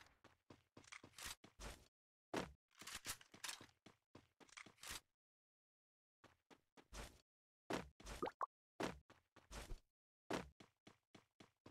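Footsteps run over the ground.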